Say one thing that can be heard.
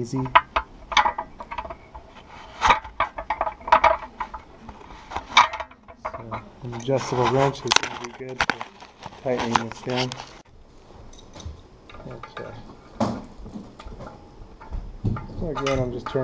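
A metal wrench clicks and clanks against a bolt.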